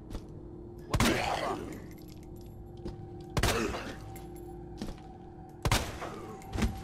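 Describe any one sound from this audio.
Gunshots fire loudly, each followed by a short ringing echo.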